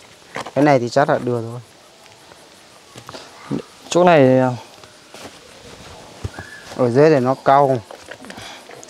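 A man speaks loudly and with animation close by, outdoors.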